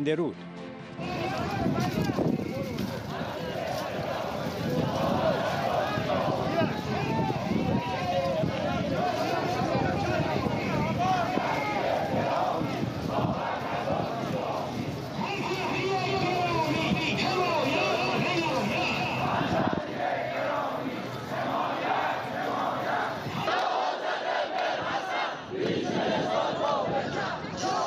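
A large crowd of men chants and shouts outdoors.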